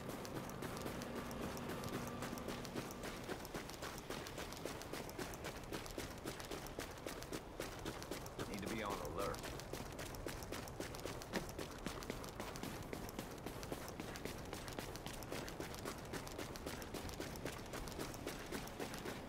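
Footsteps crunch quickly over snow.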